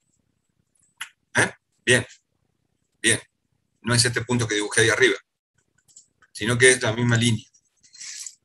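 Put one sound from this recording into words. A man speaks calmly through an online call, lecturing in short bursts.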